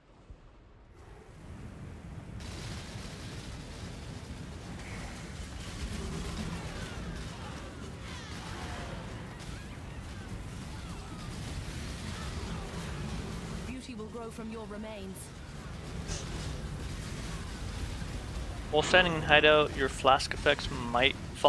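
Game spells crackle and whoosh in a busy battle.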